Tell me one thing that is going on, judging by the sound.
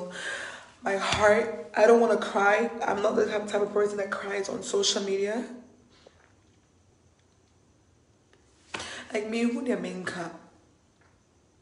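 A young woman speaks emotionally, close to the microphone.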